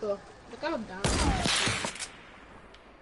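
A rifle fires with a loud boom.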